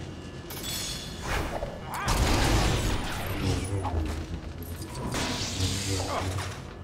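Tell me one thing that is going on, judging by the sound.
Lightsabers hum and clash with sharp electric crackles.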